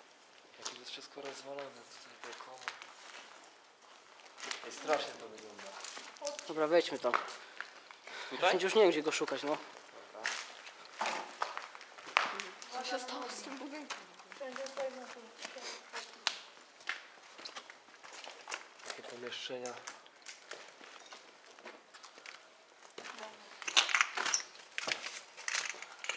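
A young man speaks quietly and nervously close by.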